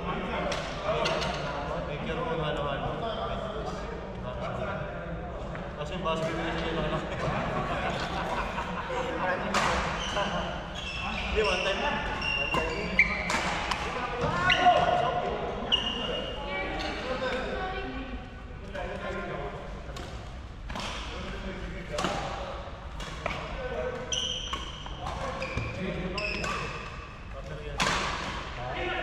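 Men call out in a large echoing hall.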